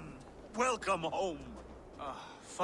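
A middle-aged man speaks warmly and with feeling, close by.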